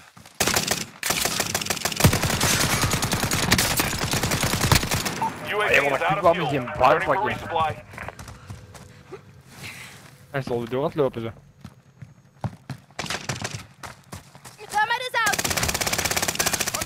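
Footsteps crunch quickly on dirt and gravel.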